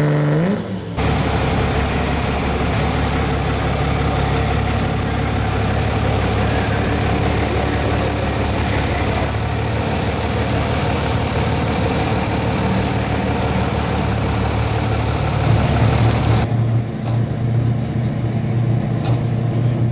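A pulling truck's engine roars steadily.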